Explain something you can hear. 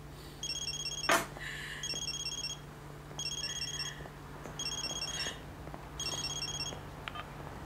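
A phone rings in short repeated bursts.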